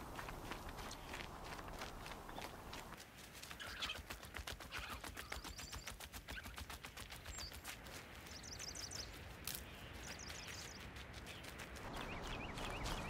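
Footsteps run quickly over a dirt path.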